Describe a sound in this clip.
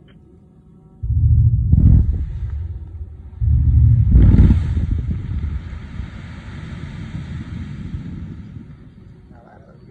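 Two heavy explosions boom in the distance, followed by a rumbling roar that slowly fades.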